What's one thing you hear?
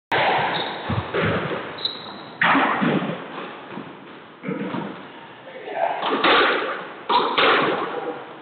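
A squash ball smacks hard against the walls and echoes around the court.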